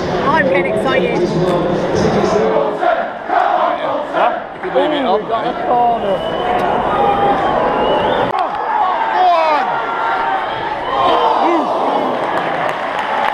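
A large crowd of football fans sings loudly in an open stadium.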